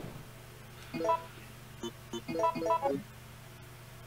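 Short electronic menu beeps chime in quick succession.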